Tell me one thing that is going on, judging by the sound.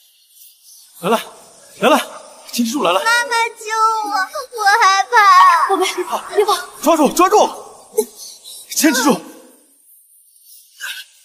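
A man cries out in strain, close by.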